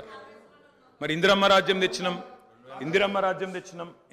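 A younger man speaks with animation into a microphone.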